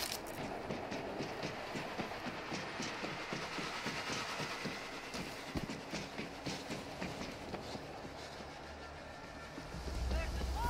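Footsteps run quickly over metal and concrete.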